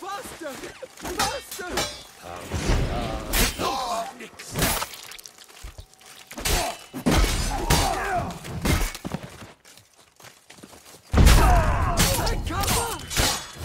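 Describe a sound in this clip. Men shout and grunt while fighting.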